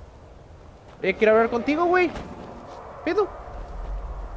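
A young man speaks loudly into a close microphone.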